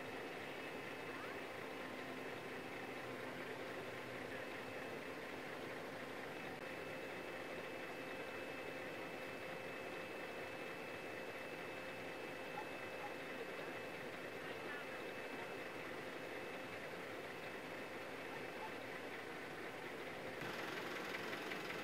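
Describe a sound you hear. A vehicle engine idles steadily nearby.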